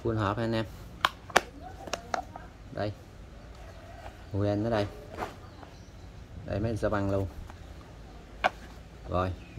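A plastic case clicks and knocks as it is handled.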